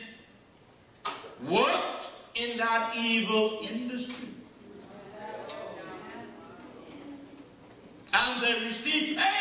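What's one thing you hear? An elderly man speaks with animation through a microphone.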